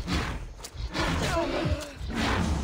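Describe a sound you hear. A large deer bellows and grunts.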